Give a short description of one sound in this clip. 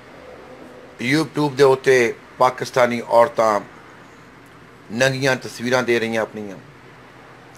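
A middle-aged man speaks calmly and close up.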